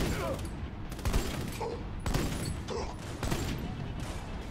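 A rifle fires several single loud shots.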